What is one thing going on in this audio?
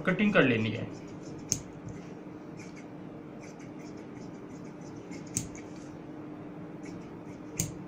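Scissors snip through cloth.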